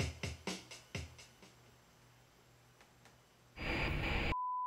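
An electronic keyboard instrument plays plucked, ringing notes that fade away.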